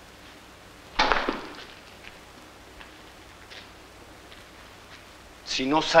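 A man speaks in short, loud bursts nearby.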